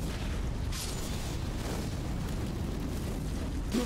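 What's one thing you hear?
A horse gallops with thudding hooves.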